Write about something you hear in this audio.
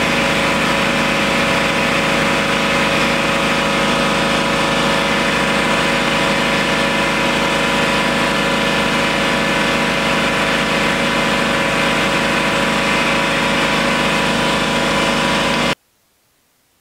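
A milling machine whines steadily as its cutter grinds through metal.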